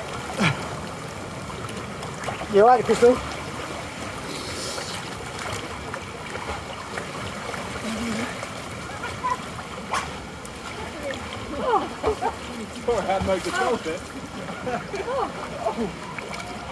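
Water rushes and churns steadily in a pool.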